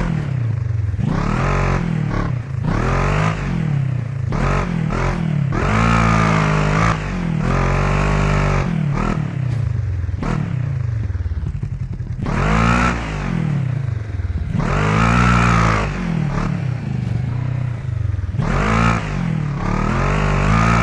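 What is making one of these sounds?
Tyres crunch and skid over loose rocks and dirt.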